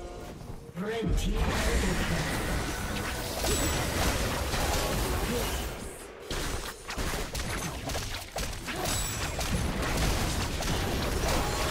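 Magic spells whoosh and crackle in a busy video game battle.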